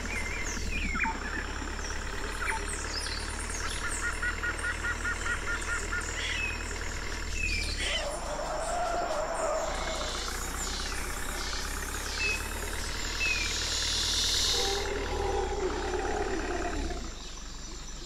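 A truck engine drones steadily.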